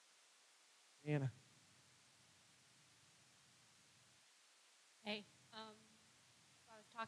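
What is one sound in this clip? A man speaks through a microphone in a large echoing hall, in short bursts with pauses.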